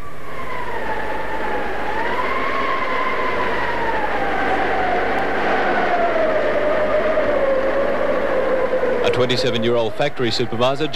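Heavy rain pours down.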